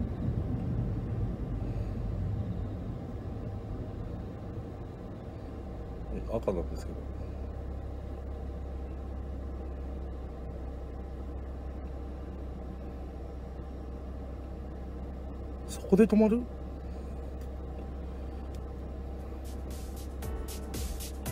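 A car's engine hums low from inside the cabin and slows to an idle.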